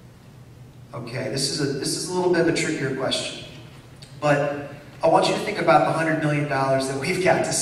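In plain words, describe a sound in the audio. A man speaks calmly through a microphone and loudspeakers in an echoing hall.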